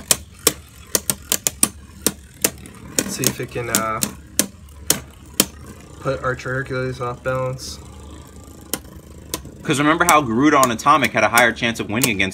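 Two spinning tops clash and click sharply against each other in a plastic arena.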